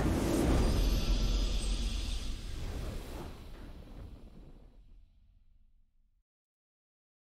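Triumphant victory music plays loudly, then slowly fades away.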